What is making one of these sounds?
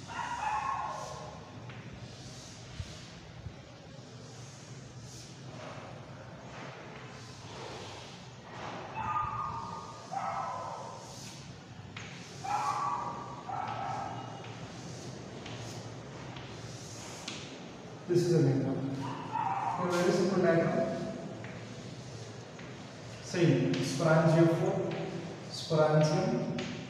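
A man speaks calmly in a lecturing tone, close by.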